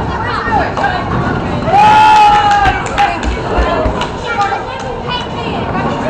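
Young girls talk excitedly close by.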